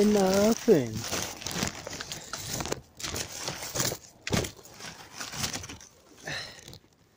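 Plastic wrapping crinkles and rustles close by.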